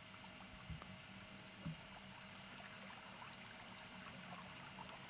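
Water rushes and gurgles steadily in a fast-flowing river.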